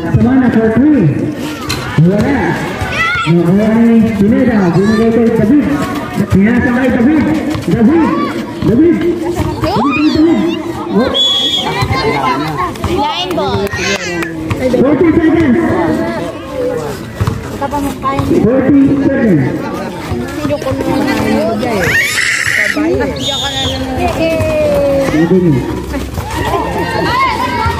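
A crowd of young people shouts and cheers loudly outdoors.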